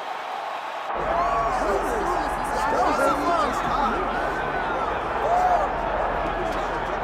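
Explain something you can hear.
A large crowd whistles loudly.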